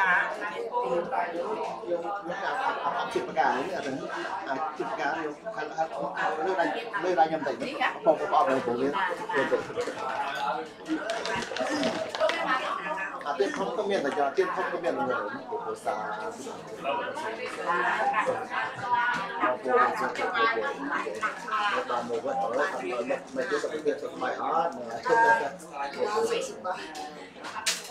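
A group of men and women chant together.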